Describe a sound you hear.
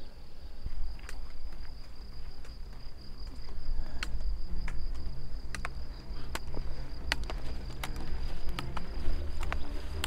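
Trekking poles tap on a dirt path.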